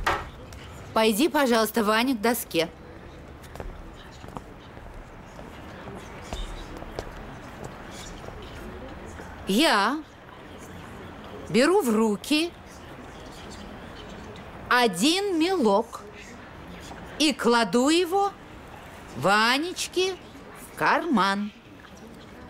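A woman speaks expressively nearby.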